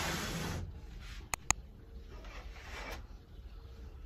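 Curtains swish as they are drawn open.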